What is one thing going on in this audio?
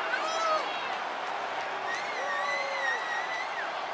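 A large crowd cheers steadily in a big echoing arena.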